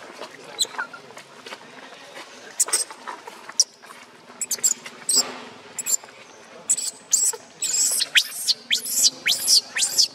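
A baby monkey squeals and cries in high, shrill bursts close by.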